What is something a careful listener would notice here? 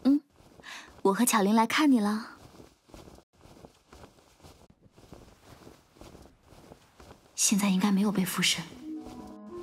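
A young woman speaks calmly and gently.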